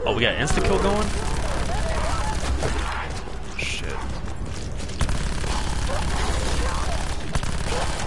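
A video game gun fires in rapid bursts.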